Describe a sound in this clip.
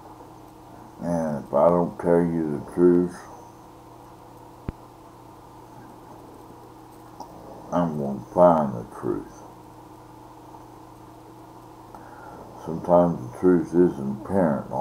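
An elderly man speaks calmly and slowly in short bursts, close to a microphone.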